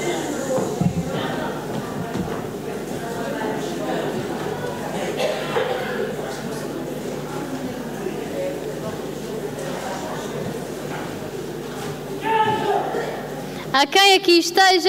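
An audience murmurs and chatters in a hall.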